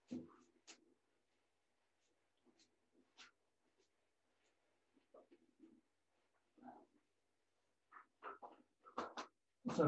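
A whiteboard eraser rubs across a board.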